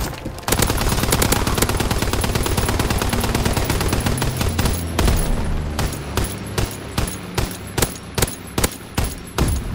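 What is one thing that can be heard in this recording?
Gunfire rattles in rapid bursts, then slows to single shots.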